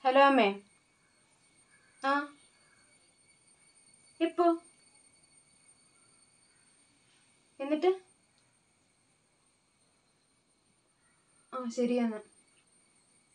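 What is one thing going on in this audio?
A young woman speaks into a phone in short, hesitant bursts.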